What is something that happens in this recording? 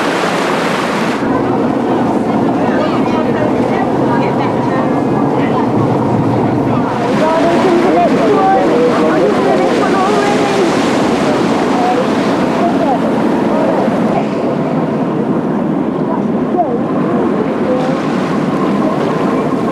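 Wind blows hard across the open water.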